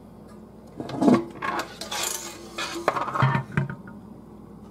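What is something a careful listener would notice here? Metal parts clatter and rattle as a metal device is handled and turned over.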